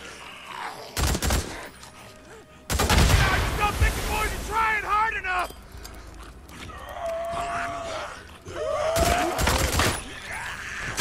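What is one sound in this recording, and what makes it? Gunfire bursts out in sharp rapid shots.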